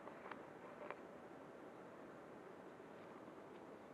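Fingers rub and tap against a fabric strap.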